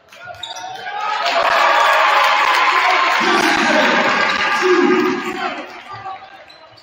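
A crowd cheers in a large echoing gym.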